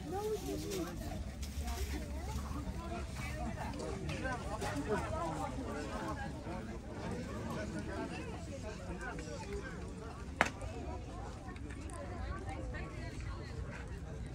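A crowd of people chatter in the background outdoors.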